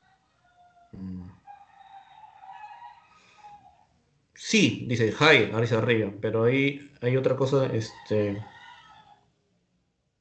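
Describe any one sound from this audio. A man speaks with animation through an online call microphone.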